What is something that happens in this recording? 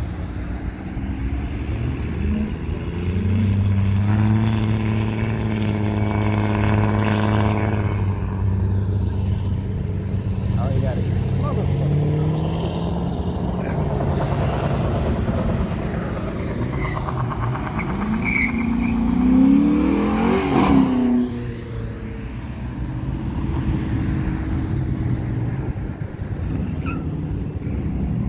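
Cars drive past on a road outdoors.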